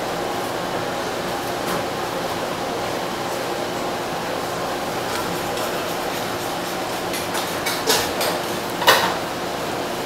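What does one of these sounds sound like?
A hand pats and presses on soft raw fish.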